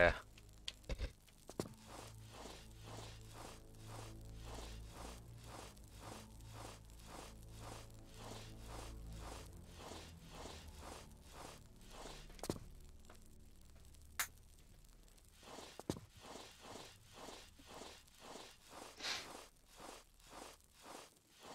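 A figure crawls along a stone floor with soft, rhythmic scuffs.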